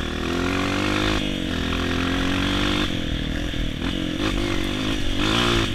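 A dirt bike engine revs loudly, its pitch rising and falling.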